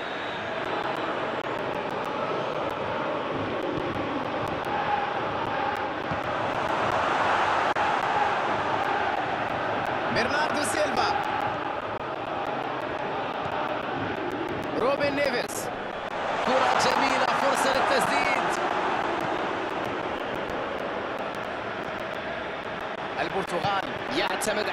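A large stadium crowd cheers and roars steadily, swelling at times.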